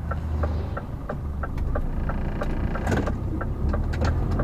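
A large truck rumbles past close by.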